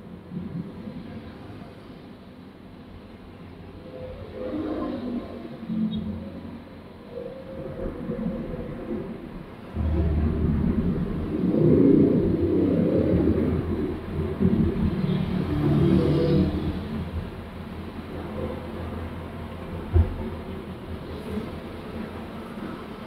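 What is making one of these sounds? Motorbikes pass close by outside.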